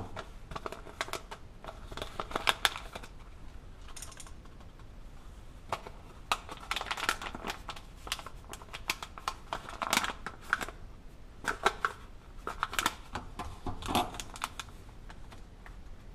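A paper packet crinkles and rustles in hands.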